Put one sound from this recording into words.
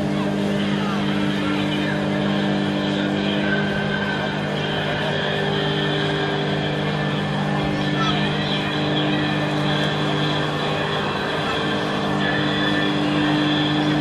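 A personal watercraft engine drones under load, powering a flyboard.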